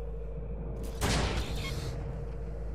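A device beeps as a control panel is activated.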